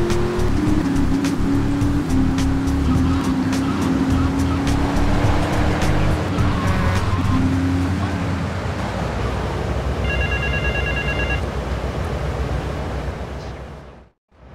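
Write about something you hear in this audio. A sports car engine hums as the car drives along a street.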